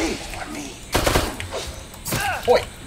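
A handgun fires a shot.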